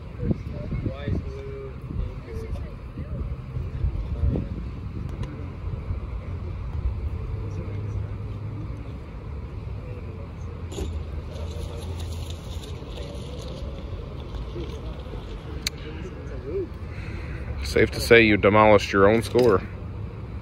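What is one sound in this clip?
A putter taps golf balls with soft clicks.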